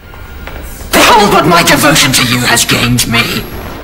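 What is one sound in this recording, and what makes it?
A woman screams.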